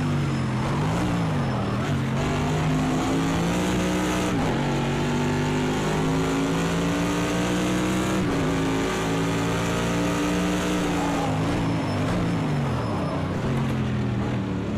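A racing car engine roars loudly, rising in pitch through the gears and dropping as it slows for corners.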